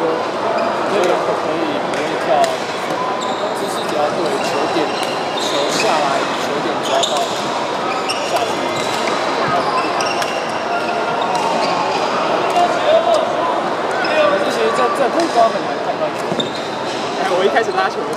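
Shuttlecocks are struck by rackets with sharp pops.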